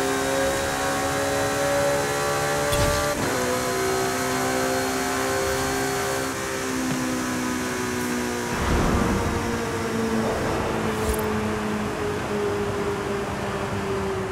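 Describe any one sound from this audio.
A sports car engine roars at high speed, its pitch shifting as gears change.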